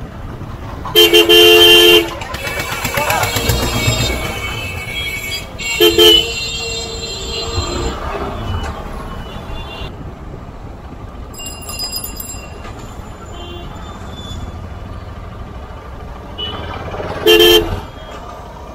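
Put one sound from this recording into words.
Vehicle horns honk loudly in short blasts.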